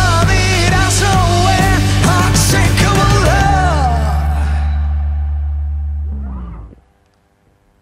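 A young man sings loudly into a microphone over a band.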